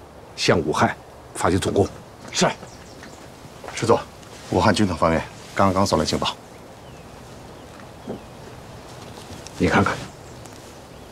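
A middle-aged man speaks firmly and calmly nearby.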